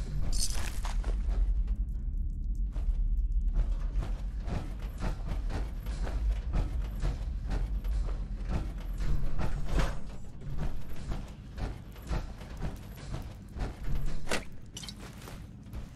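Heavy metal footsteps clank steadily on a hard floor.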